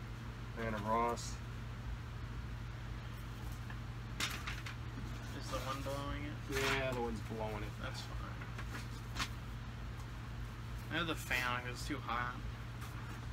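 A middle-aged man speaks casually nearby.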